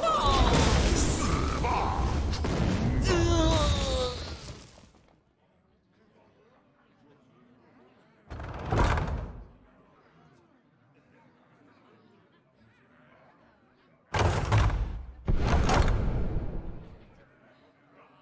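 Game sound effects crash, chime and whoosh in short bursts.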